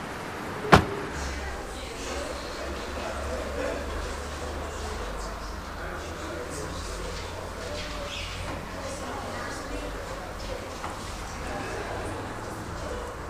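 Footsteps echo across a large hard-floored hall.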